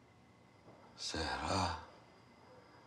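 A woman speaks softly.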